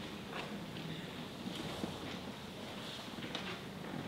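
Footsteps tap softly across a wooden floor in a quiet, echoing hall.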